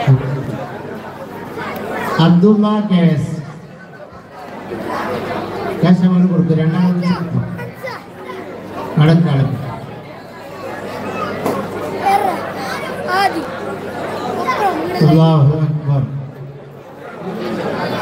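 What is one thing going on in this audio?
A man speaks with animation into a microphone, heard through loudspeakers.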